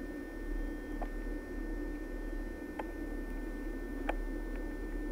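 Train wheels clack on rail joints.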